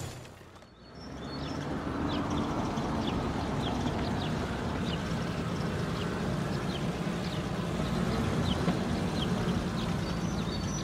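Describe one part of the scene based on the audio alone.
A small truck's engine hums as it drives along.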